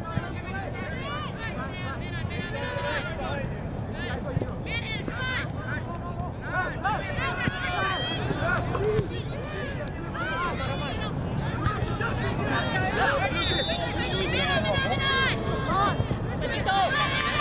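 Teenage girls shout and call out to each other at a distance outdoors.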